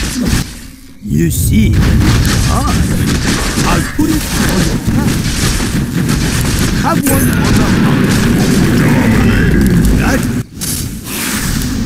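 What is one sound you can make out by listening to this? Weapons clash and spells burst in a noisy battle.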